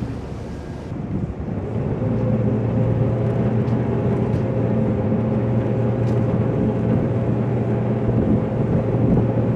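A ship's engine hums steadily nearby.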